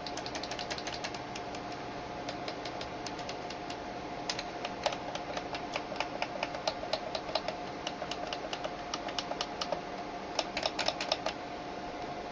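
Plastic joystick buttons click rapidly, over and over.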